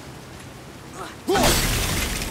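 An axe is thrown and whooshes through the air.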